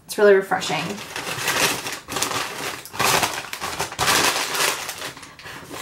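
A paper bag crinkles and rustles.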